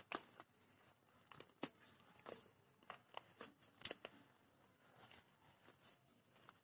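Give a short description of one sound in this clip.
A plastic bag crinkles and tears as hands pull it off a clump of soil.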